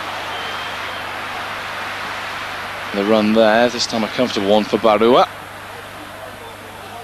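A stadium crowd murmurs and roars steadily in the distance.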